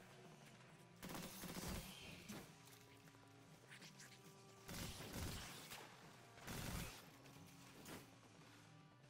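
A rifle fires in loud, rapid bursts.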